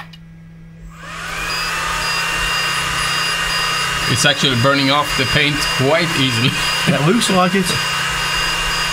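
A small cooling fan whirs steadily.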